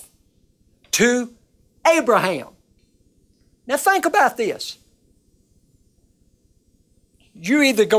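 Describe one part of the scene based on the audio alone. An elderly man speaks slowly and deliberately into a close microphone, with long pauses.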